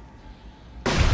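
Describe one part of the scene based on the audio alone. A gun fires a single loud shot.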